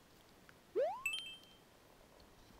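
A short chime rings from a video game.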